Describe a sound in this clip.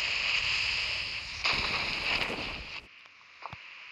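Wind rushes loudly past during a parachute descent.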